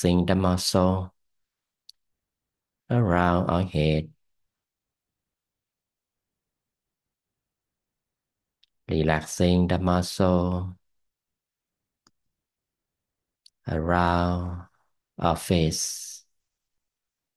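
A man speaks calmly into a microphone in short phrases with long pauses.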